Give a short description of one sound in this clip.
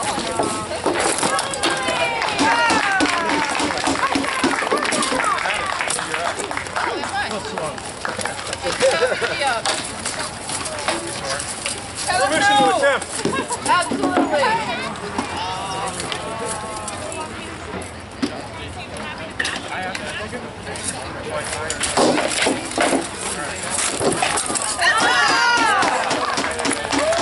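A crowd of men and women talks and calls out nearby, outdoors.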